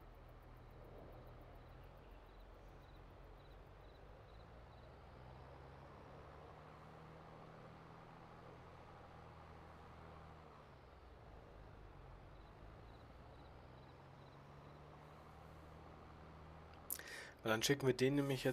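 A truck engine hums steadily as the truck drives slowly.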